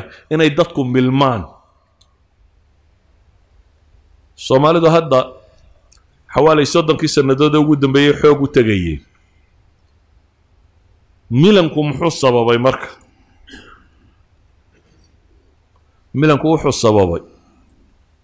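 A middle-aged man speaks calmly into a microphone in short phrases with pauses.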